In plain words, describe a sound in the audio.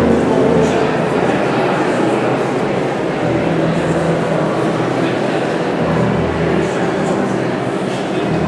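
A crowd of people sings together in a large echoing hall.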